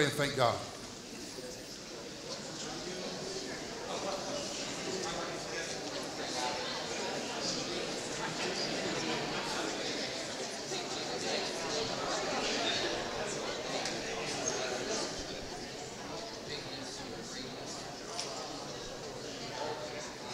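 Many people chat quietly all around.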